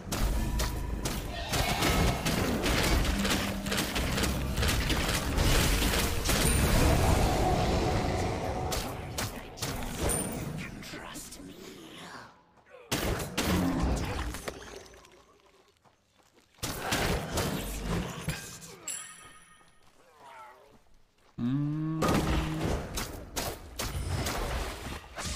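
Spell effects whoosh and crackle in short bursts.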